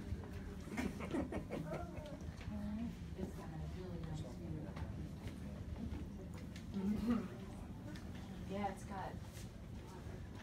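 A woman speaks calmly and explains to a small group, somewhat muffled and at a distance.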